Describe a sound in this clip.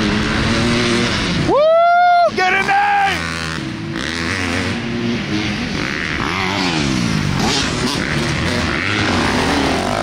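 Dirt bike engines rev loudly, their pitch rising and falling as they speed up and shift.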